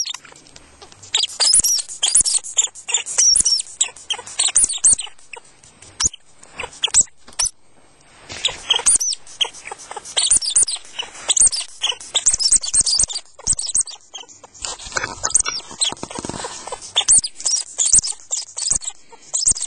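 A small rodent squeaks and shrieks sharply and rapidly, close by.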